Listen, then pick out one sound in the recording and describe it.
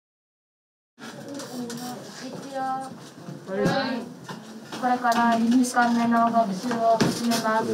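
A woman speaks calmly to a class.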